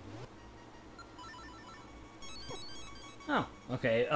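Short electronic game beeps chirp in quick runs.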